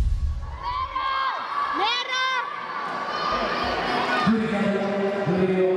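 Children's voices call out and squeal in a large echoing hall.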